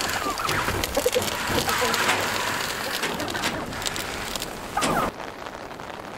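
Grain pours and rattles into a metal trough.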